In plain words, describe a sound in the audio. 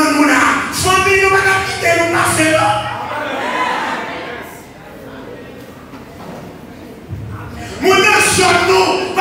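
A man preaches loudly and with passion through a microphone and loudspeakers in an echoing hall.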